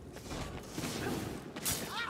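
Streaks of fire whoosh through the air.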